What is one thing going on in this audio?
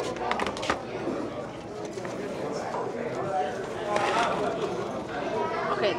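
Paper wrappers rustle and crinkle.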